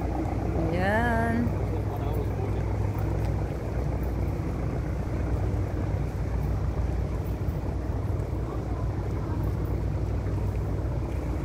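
Water splashes and laps against a boat's hull.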